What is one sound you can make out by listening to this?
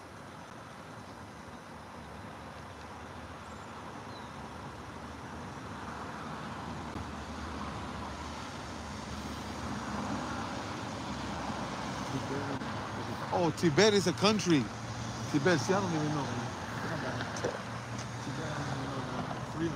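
A car engine hums as the car rolls slowly closer and passes by.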